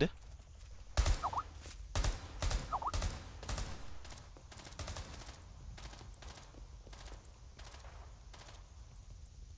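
Footsteps tread quickly on a hard floor.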